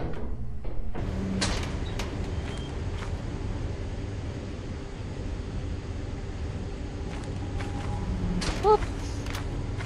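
A walkie-talkie crackles with static.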